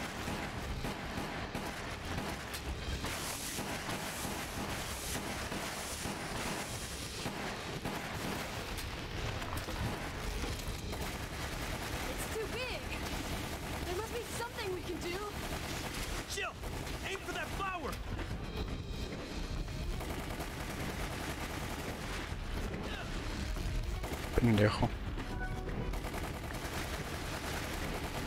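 Gunfire rattles rapidly in a game.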